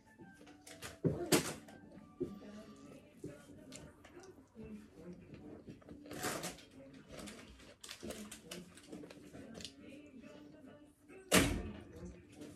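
Cutlery clinks against a plate.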